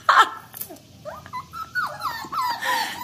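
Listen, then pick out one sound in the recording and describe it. A puppy whimpers in high, wavering cries.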